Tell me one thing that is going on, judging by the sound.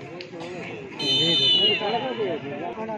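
A referee blows a whistle with a short, shrill blast.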